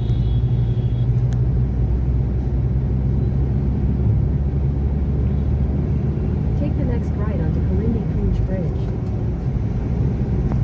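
Tyres roll on the road with a steady low rumble.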